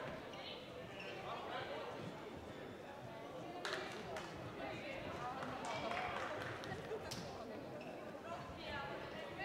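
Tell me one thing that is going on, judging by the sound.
Sneakers squeak sharply on the court floor.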